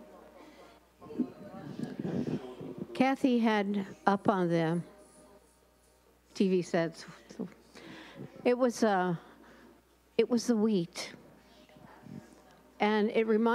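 A middle-aged woman speaks with animation through a microphone and loudspeakers in an echoing hall.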